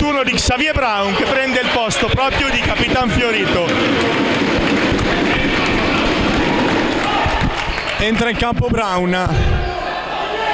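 Young men shout and call out across an echoing hall.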